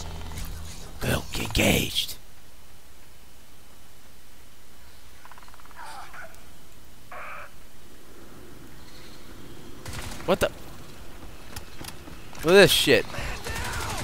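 Gunshots fire in short, loud bursts.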